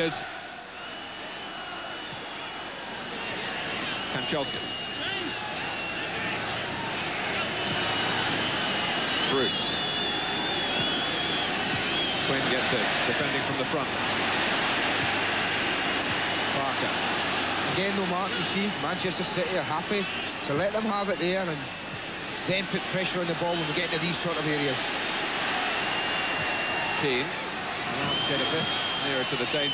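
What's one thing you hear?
A large stadium crowd roars and chants steadily, swelling louder at times.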